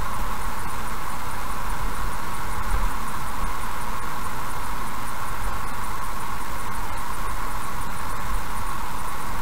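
Tyres roll over asphalt with a steady rushing noise.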